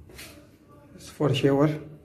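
A plastic shower curtain rustles as a hand pulls it aside.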